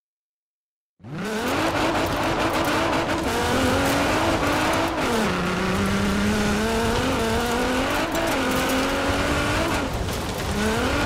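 Tyres crunch on loose dirt.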